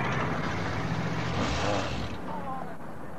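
A car drives past close by and fades away.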